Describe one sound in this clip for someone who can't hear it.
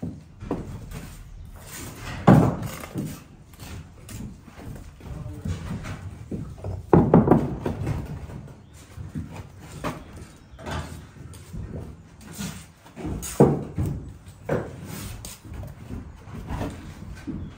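A trowel scrapes and taps against bricks and mortar.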